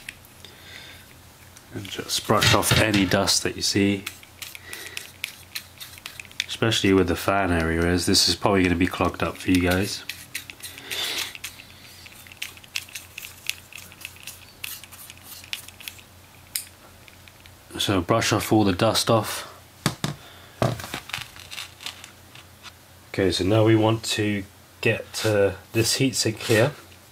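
Small tools click and scrape lightly against metal parts.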